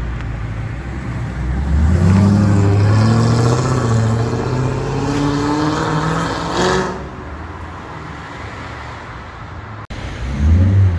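A muscle car accelerates hard, its engine roaring as it pulls away.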